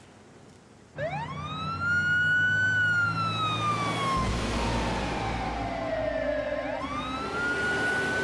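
A vehicle engine hums as it drives past.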